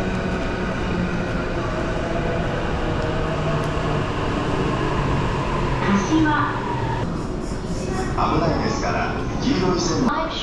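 Footsteps shuffle on a hard floor nearby.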